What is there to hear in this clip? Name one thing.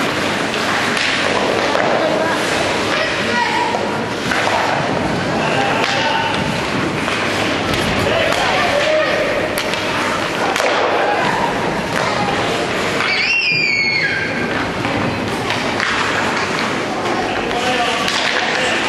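Ice skates scrape and swish across the ice in an echoing rink.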